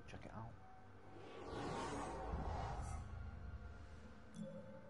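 A deep rumbling whoosh swells and fades.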